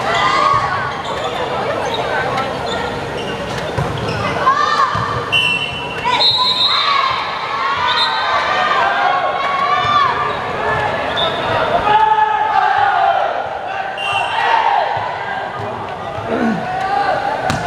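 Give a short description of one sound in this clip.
Young players shout and cheer together in an echoing hall.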